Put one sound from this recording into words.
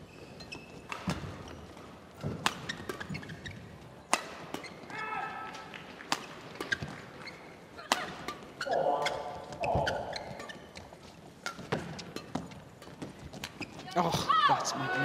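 Rackets smack a shuttlecock back and forth in a fast rally.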